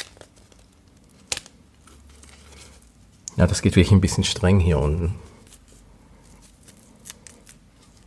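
A watch strap clicks as it is fastened.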